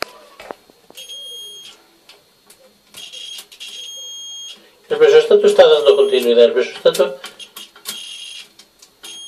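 A multimeter beeps in steady tones.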